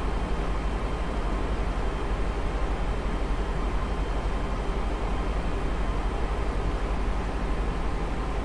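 A jet airliner's engines roar steadily.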